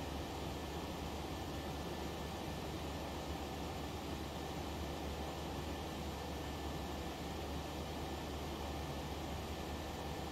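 Jet engines drone steadily, heard from inside the aircraft.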